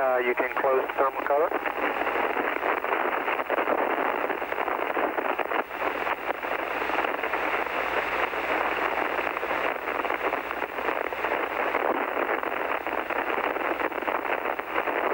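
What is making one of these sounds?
A man speaks over a crackling, hissing radio link.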